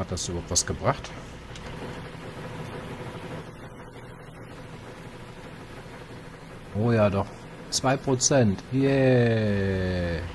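An excavator's diesel engine rumbles steadily.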